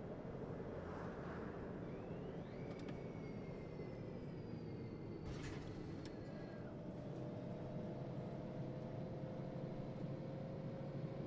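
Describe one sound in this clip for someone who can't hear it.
Tyres roll over the road surface.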